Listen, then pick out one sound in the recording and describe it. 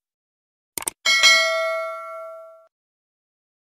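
A bell chimes brightly and rings out.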